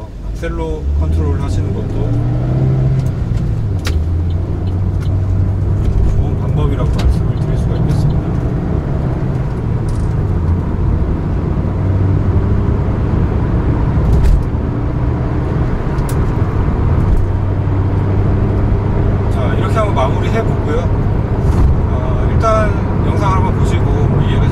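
A car engine hums low and steady while the car speeds up.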